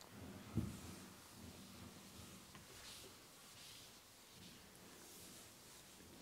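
An eraser rubs across a board.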